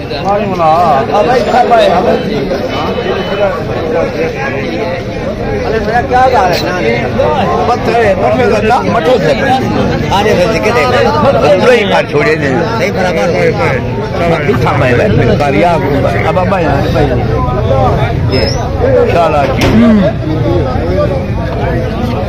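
A crowd of men talks loudly all at once, close by and outdoors.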